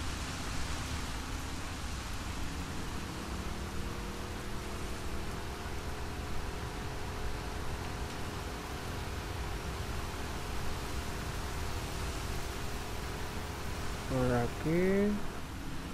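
A small outboard motor drones steadily.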